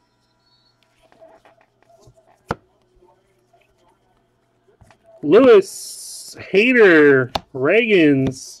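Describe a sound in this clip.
Trading cards flick and rustle softly as they are flipped through by hand.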